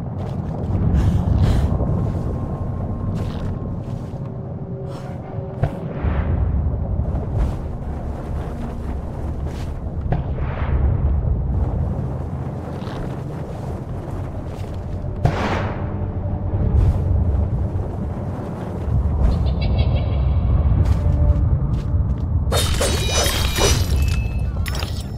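A deep wind roars steadily.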